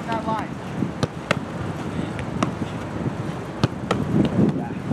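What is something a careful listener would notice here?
Footballs thud sharply as players kick them, outdoors.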